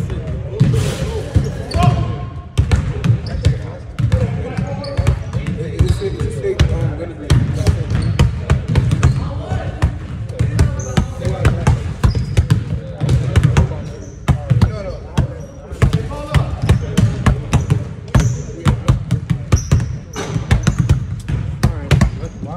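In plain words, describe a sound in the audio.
Basketballs bounce on a wooden floor in a large echoing gym.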